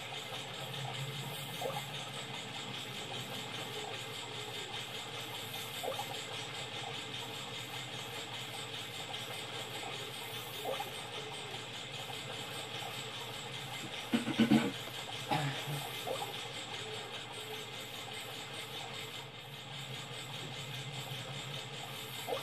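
Video game sounds play from a television speaker across the room.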